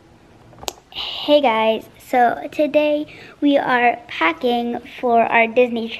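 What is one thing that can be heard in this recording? A young girl speaks cheerfully and close up.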